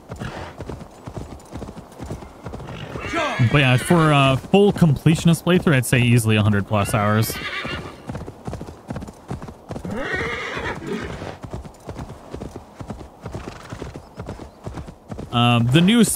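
A horse's hooves thud softly on grass at a slow walk.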